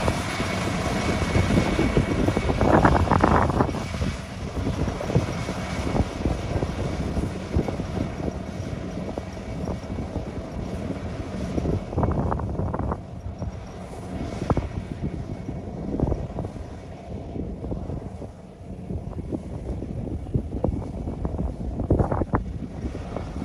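A combine harvester engine rumbles steadily nearby, outdoors in light wind.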